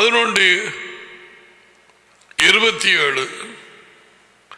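An elderly man speaks slowly into a microphone, with a strong echo.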